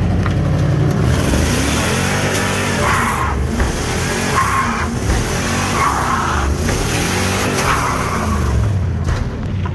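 Tyres squeal on pavement.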